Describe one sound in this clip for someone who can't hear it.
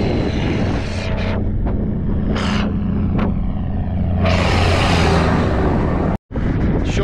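A tractor engine drones as it passes close by.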